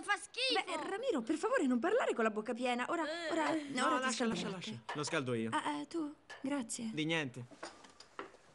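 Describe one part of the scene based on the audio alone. A woman talks with animation, close by.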